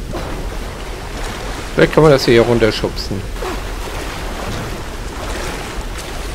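Water splashes as someone wades through a shallow stream.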